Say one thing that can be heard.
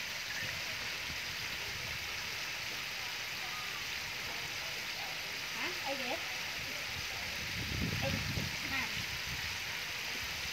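Chicken legs sizzle and bubble in hot oil in a deep fryer.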